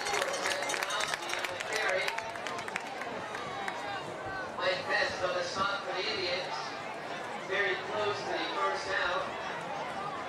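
Players shout to each other on the field.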